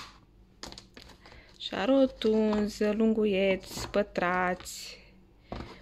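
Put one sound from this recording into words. A plastic tub rattles and clicks as pastries are picked out of it.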